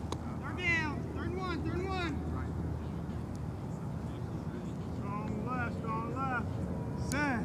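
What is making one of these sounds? Young men call out to each other across an open field.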